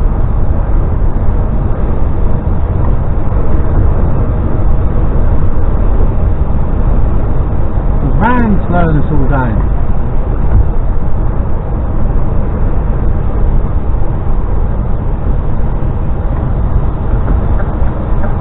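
A truck's engine drones steadily while driving.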